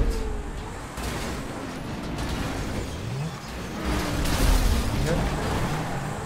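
A car tumbles and scrapes over the road.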